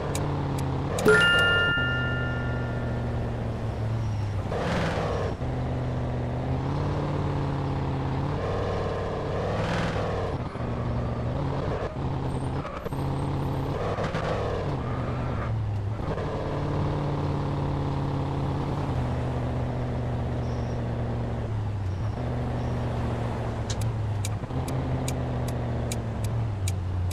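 A car engine hums steadily and rises and falls in pitch as the car speeds up and shifts gears.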